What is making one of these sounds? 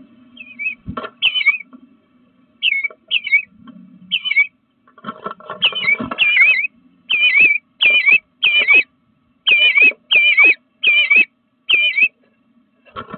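A small bird chirps in short, quick, repeated calls close by.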